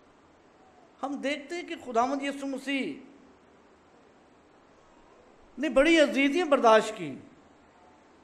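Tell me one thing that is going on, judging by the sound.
An older man reads aloud calmly into a microphone, in short phrases with pauses.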